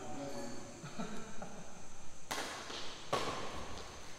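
A badminton racket smacks a shuttlecock in an echoing hall.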